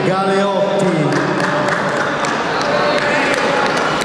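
Spectators clap and cheer.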